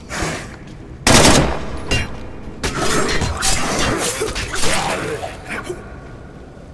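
Heavy blows thud as a fighter strikes a zombie.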